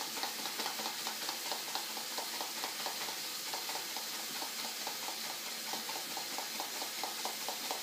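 A small whisk rattles quickly and steadily inside a mug.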